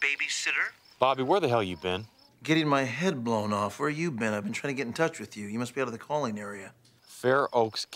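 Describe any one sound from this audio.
A man speaks calmly on a phone, heard close.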